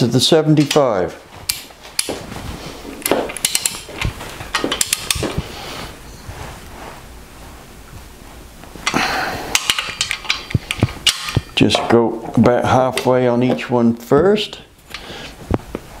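A ratchet wrench clicks as it turns.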